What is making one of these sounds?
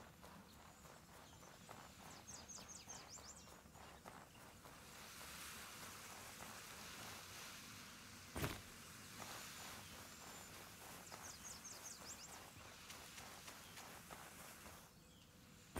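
Footsteps crunch on grass and sand.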